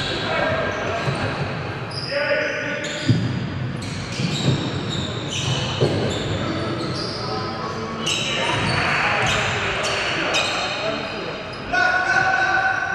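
Players call out to each other from across the court.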